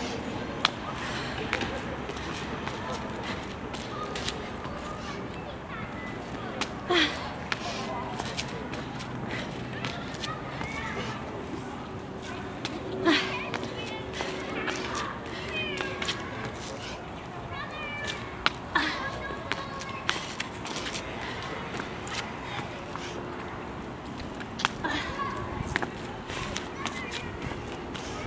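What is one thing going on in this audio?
Sneakers thud and scuff on brick paving as someone jumps and lands.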